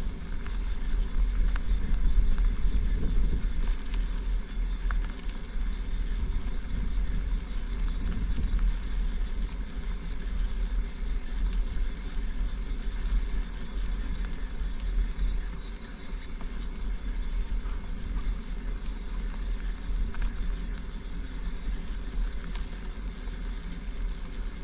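Tyres crunch steadily over a gravel path.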